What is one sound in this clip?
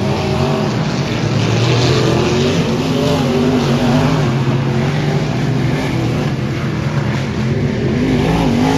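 Race car engines roar loudly, rising and falling in pitch.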